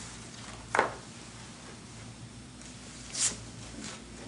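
Paper rustles as a folder is opened and handled.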